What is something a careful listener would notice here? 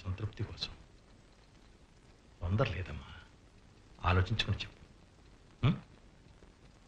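An elderly man speaks in short, firm phrases.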